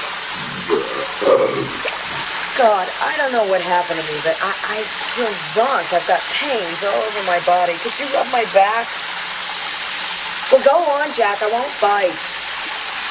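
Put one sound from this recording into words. A woman talks quietly nearby.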